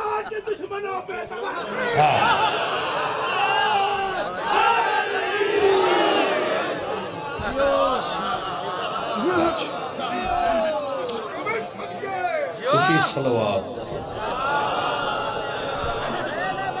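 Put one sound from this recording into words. A man recites with emotion through a microphone and loudspeakers.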